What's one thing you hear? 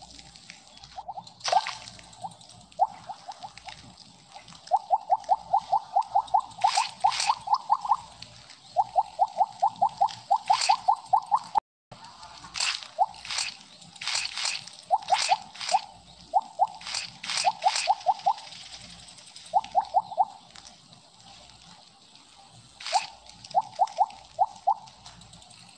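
Quick pinging game blips sound in rapid bursts as pellets are eaten.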